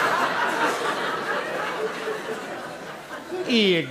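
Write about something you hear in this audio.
A man speaks in a comically exaggerated voice.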